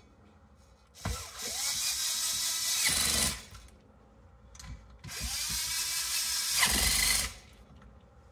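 A cordless drill whirs in two long bursts.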